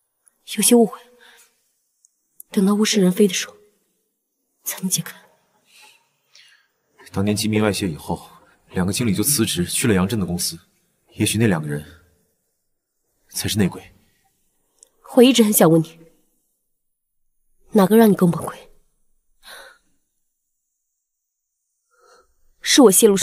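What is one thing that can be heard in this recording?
A young woman speaks calmly and seriously, close by.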